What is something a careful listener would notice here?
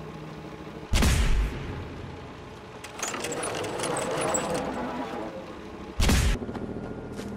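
A heavy gun fires loud single shots.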